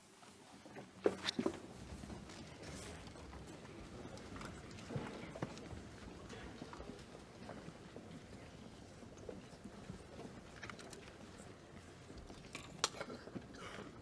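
Chairs creak and knock as people stand up.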